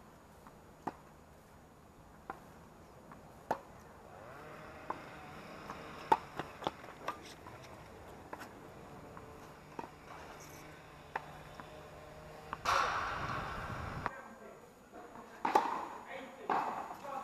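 Tennis balls are struck with rackets in a steady rally.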